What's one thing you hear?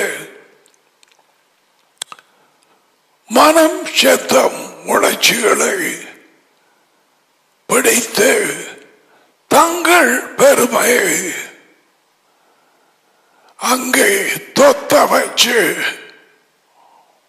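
An elderly man speaks with animation into a close headset microphone, in short bursts with pauses.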